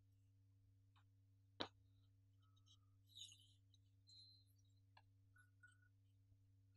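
A wooden ruler knocks and scrapes against a chalkboard.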